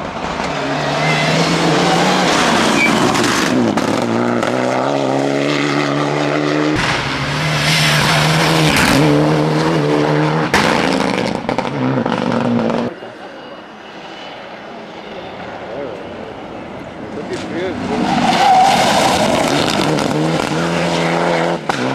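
A rally car engine roars loudly as it speeds past close by.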